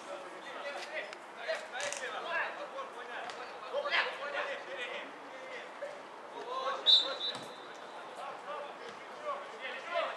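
Footballers shout to each other across an open pitch outdoors.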